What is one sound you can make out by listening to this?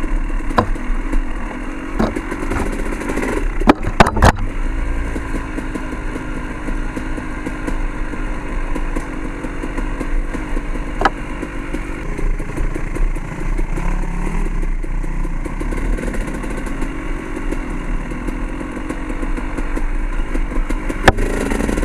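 Leaves and branches brush and slap against the rider.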